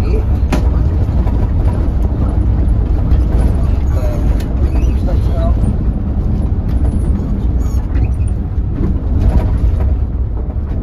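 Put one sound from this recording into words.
A vehicle's engine hums steadily from inside the cabin while driving.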